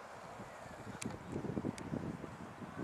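A golf putter taps a ball with a light click.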